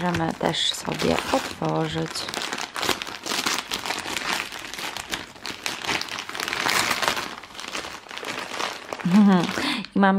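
Wrapping paper crinkles and tears.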